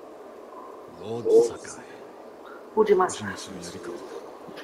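A man in armour speaks calmly, close by.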